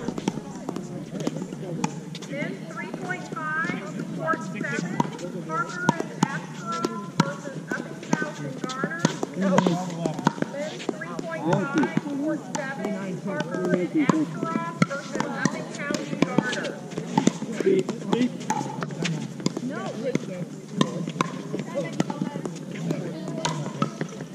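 Paddles strike a plastic ball with sharp hollow pops.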